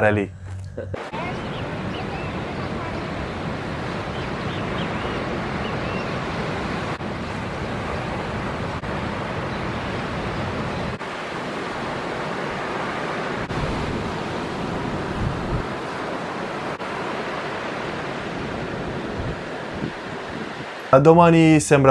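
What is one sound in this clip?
Waves crash and roll onto the shore.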